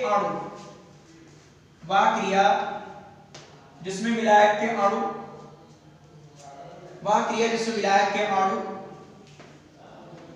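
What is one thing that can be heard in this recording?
A man speaks in a loud, measured, lecturing voice in an echoing room.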